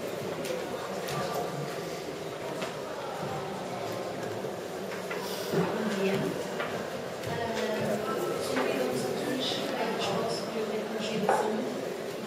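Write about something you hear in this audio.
A woman speaks calmly in a large room.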